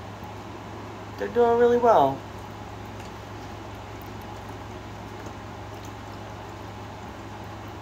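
Water trickles softly from a small fountain.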